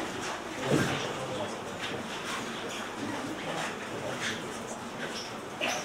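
An elderly man speaks in a calm, steady voice in a large echoing room.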